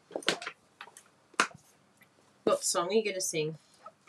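A plastic case snaps open.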